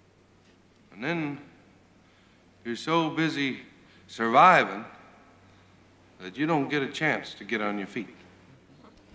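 A middle-aged man speaks tensely into a microphone.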